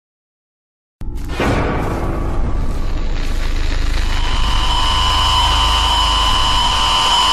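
Loud static hisses and crackles.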